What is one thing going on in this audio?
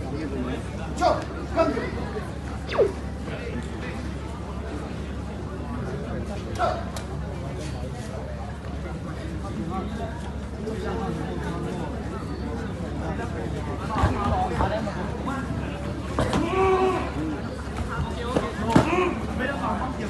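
Fighters' kicks thud against padded body guards.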